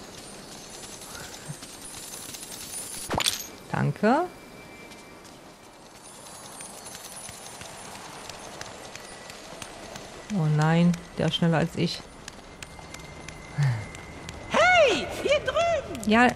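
Footsteps patter on sand and then on stone.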